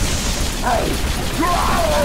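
An energy weapon fires with a crackling, buzzing blast.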